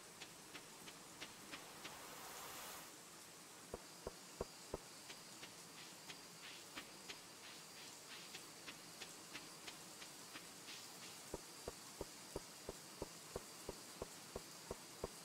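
Footsteps tap lightly at a steady, quick pace.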